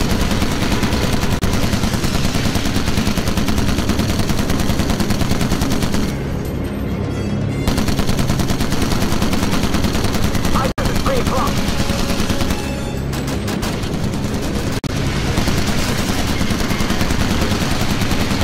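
Heavy machine guns fire in rapid bursts.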